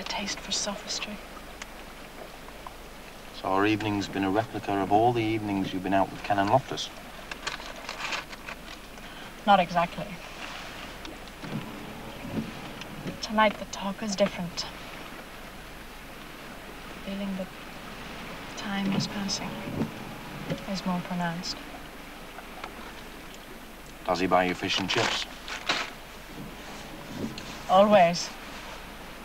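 A young woman talks softly and close by.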